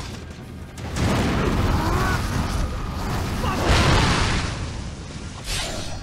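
Fiery explosions roar and crackle.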